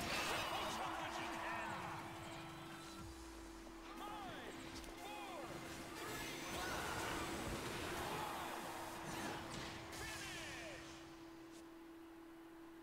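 Game sound effects whoosh, zap and clang through a fast fight.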